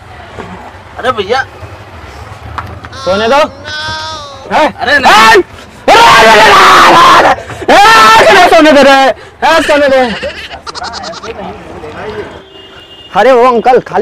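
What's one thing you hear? A young man shouts and cries out loudly close by.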